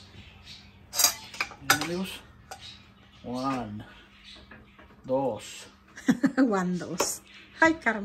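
Metal tongs clink against a pan and a plate.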